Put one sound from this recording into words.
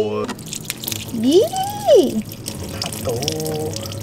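Dirty water splashes onto a drain.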